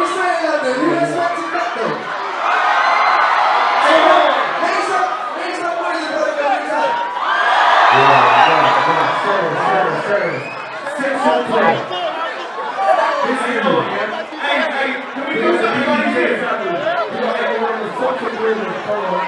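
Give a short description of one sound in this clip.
Young men talk and shout excitedly close by.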